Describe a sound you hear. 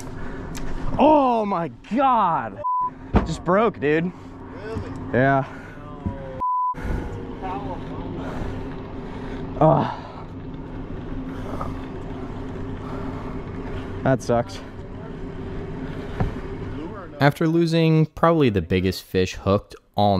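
Men on a boat shout and exclaim with excitement.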